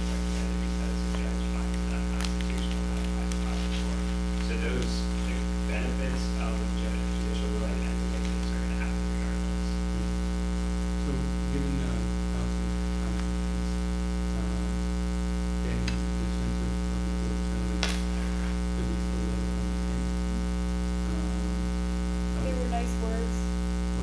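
A man speaks calmly, heard distantly through a room microphone.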